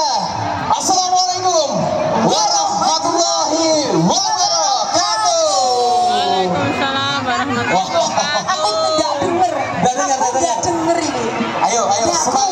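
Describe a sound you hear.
Loud amplified music with a singing voice plays over loudspeakers outdoors.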